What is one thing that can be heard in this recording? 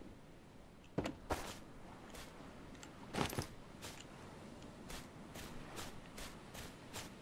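Footsteps crunch steadily over grass and leaves.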